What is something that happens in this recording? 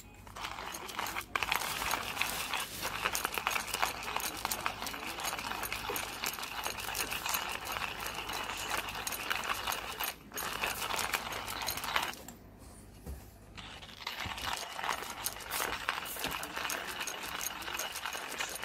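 Milk sloshes inside a handheld milk frother that is shaken.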